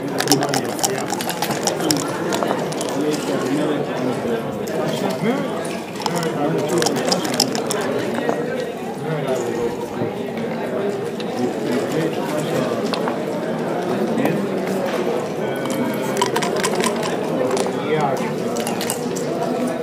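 Dice rattle and tumble onto a board.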